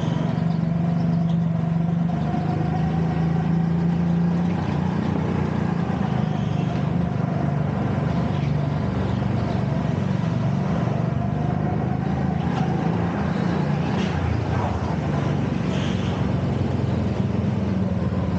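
A go-kart engine buzzes loudly up close, rising and falling in pitch as it speeds up and slows down.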